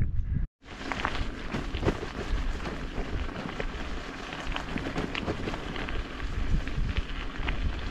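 Tyres crunch and rattle over a rough, muddy dirt track.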